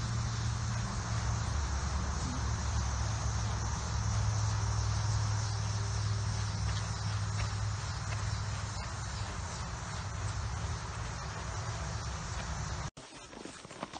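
A horse's hooves thud rhythmically on soft dirt as it canters.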